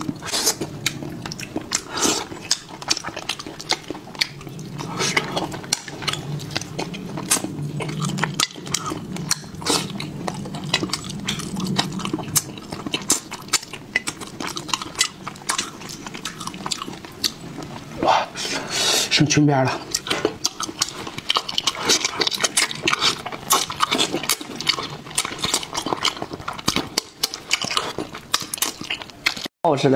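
A young man chews and slurps food loudly, close to a microphone.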